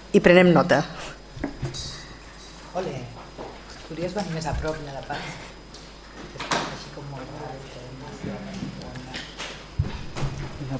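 A woman speaks into a microphone over loudspeakers in a large echoing hall.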